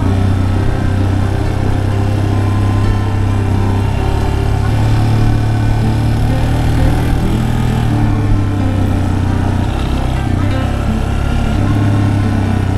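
A motorcycle engine hums steadily and changes pitch as the rider shifts and accelerates.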